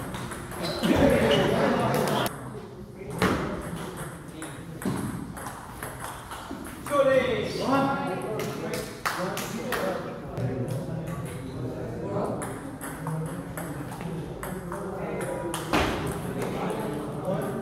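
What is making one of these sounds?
A ping pong ball clicks back and forth on paddles and a table.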